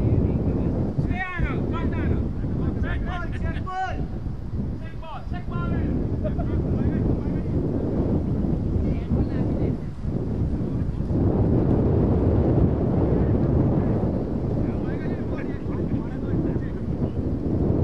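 Men call out to each other from a distance across the field.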